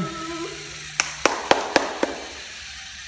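Plastic robot parts knock and clatter together.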